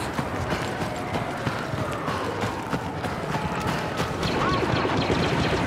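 Footsteps crunch quickly over rocky ground.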